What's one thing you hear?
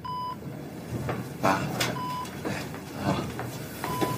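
A young man calls out in an upset voice.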